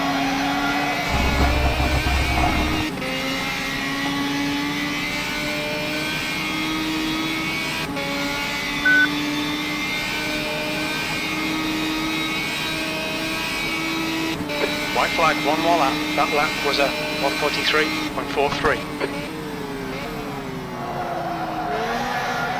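A racing car engine drones steadily, its pitch rising and falling with gear shifts.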